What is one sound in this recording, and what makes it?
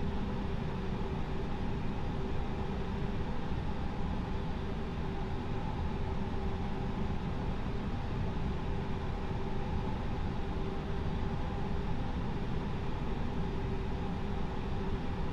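Aircraft engines hum steadily at idle.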